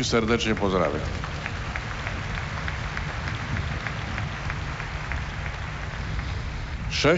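A large crowd cheers and murmurs outdoors.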